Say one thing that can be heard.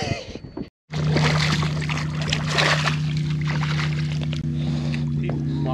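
A fish splashes and thrashes in the water.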